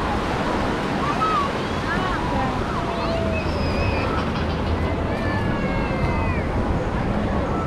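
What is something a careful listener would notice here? Children shout and squeal playfully nearby.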